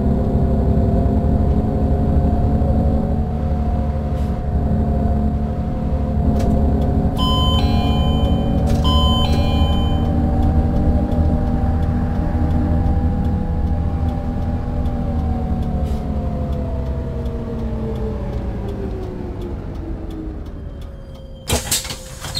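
A bus engine hums steadily, then winds down as the bus slows to a stop.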